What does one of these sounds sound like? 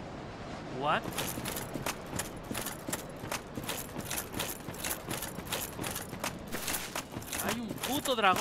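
Armoured footsteps clank quickly on the ground.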